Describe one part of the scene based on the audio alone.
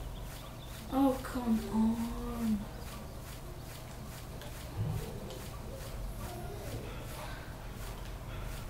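A young boy talks with animation.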